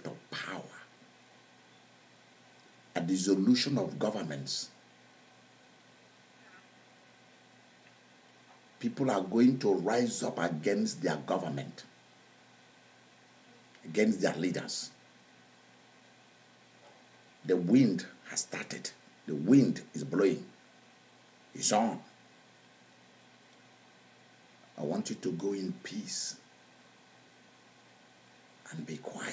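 A middle-aged man speaks with animation in short bursts, close to a microphone, with pauses between.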